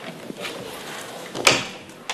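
A metal key rattles and turns in a heavy door lock.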